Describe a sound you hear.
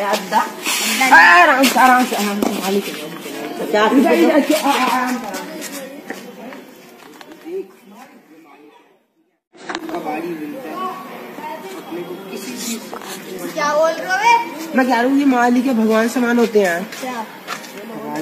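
Teenage boys talk loudly and with animation close by.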